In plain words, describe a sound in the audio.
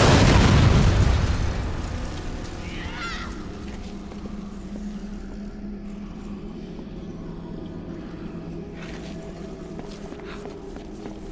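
Footsteps fall on hard ground.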